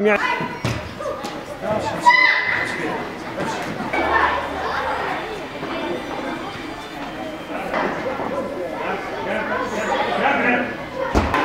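Children shout and chatter nearby, outdoors.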